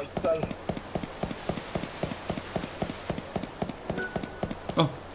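Footsteps tap quickly and steadily on a stone floor.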